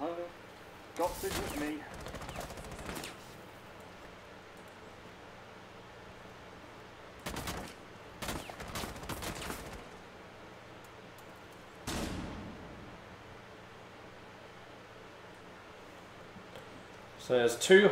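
Gunshots crack against a glass shield in short bursts.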